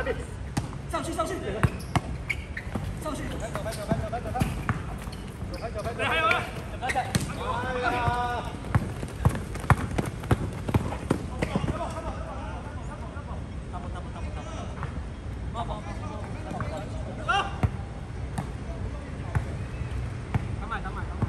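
Young men call out to each other during play.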